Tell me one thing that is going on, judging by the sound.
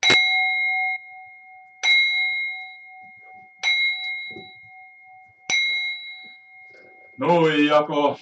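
A small metal bell rings out with clear, lingering tones, struck four times.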